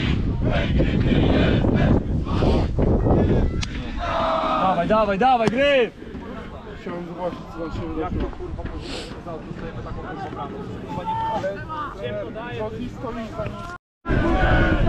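A crowd of fans chants and sings in the distance.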